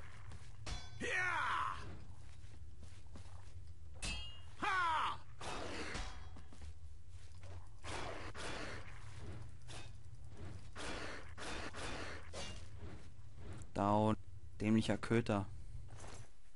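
A beast snarls and growls.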